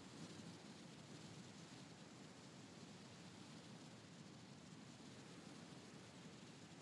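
Wind rushes steadily past during a fast glide through the air.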